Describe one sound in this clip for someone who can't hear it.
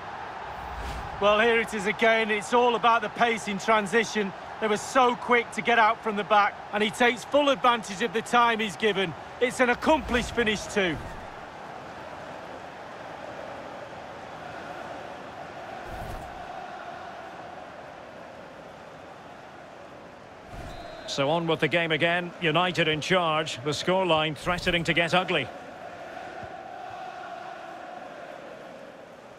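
A large stadium crowd cheers and roars in a steady wash of noise.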